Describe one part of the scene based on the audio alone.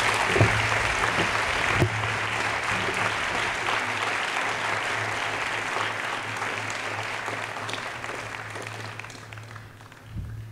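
A crowd applauds outdoors, then the clapping fades away.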